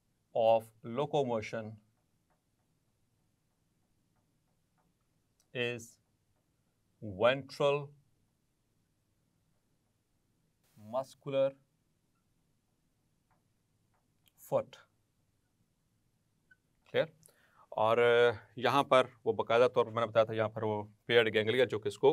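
A man speaks calmly into a close microphone, explaining in pauses.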